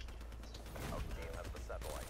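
A gun fires a short burst of shots.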